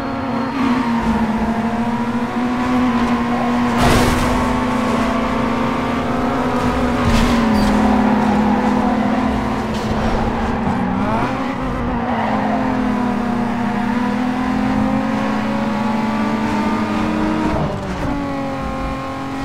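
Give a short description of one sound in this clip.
Tyres screech as a car drifts through corners.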